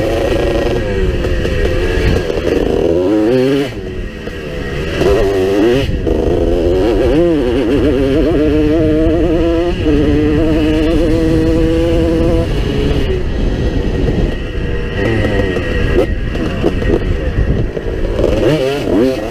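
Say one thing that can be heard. Tyres crunch and bump over a dirt track.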